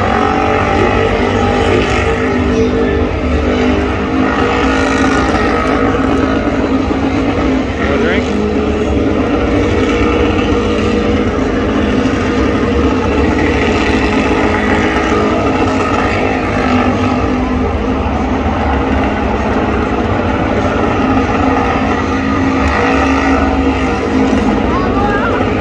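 A car engine roars loudly and revs steadily.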